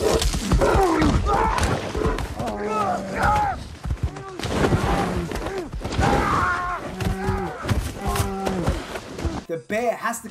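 A large bear growls and roars loudly close by.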